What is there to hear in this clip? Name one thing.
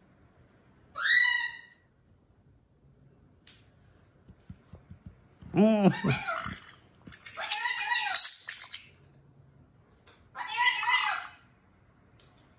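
A parrot squawks and chatters loudly, close by.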